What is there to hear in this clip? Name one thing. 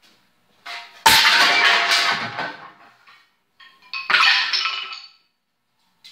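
Metal shovels clatter loudly onto a concrete floor.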